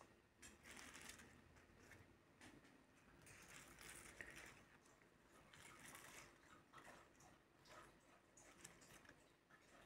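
Fresh leaves rustle and crackle as a hand sorts through them.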